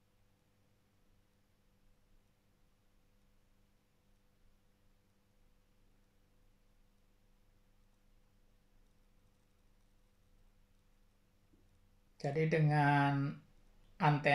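A metal connector clicks softly as it is twisted onto a cable.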